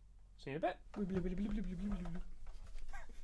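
An acoustic guitar strums a chord.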